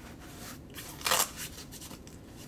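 Velcro rips open.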